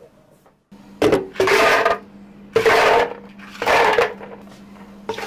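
Ice cubes clatter into a plastic jug.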